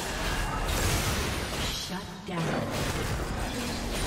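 Fighting sound effects clash and burst in a video game.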